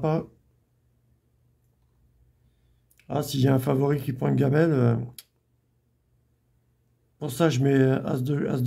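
A middle-aged man speaks calmly and close to the microphone, in short bursts with pauses.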